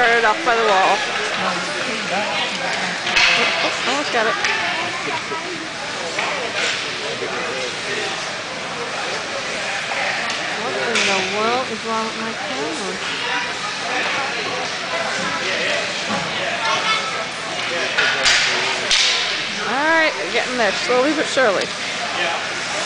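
Young children shout and chatter in an echoing rink.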